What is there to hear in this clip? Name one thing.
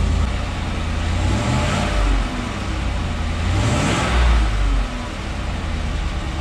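A car engine idles with a deep, rough exhaust rumble close by.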